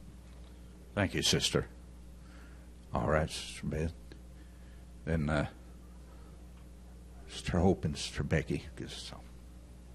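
An elderly man speaks slowly and deliberately into a microphone, in short bursts with pauses.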